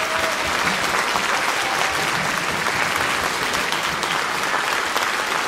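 An orchestra plays in a large echoing hall.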